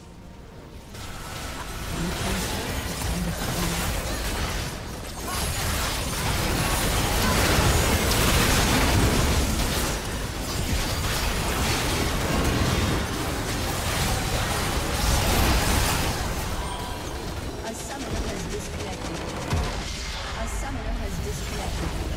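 Game spells blast, crackle and boom in a hectic battle.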